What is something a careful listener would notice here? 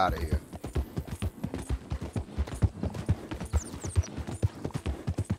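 A horse gallops, its hooves thudding quickly and steadily on gravel.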